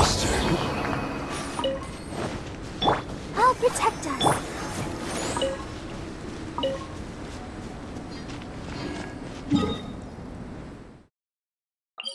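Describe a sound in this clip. Game music plays steadily, then stops abruptly.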